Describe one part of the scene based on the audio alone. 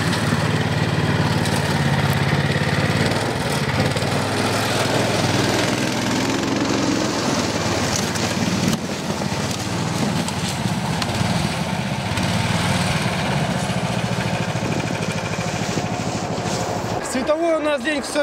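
A snowmobile engine roars loudly close by.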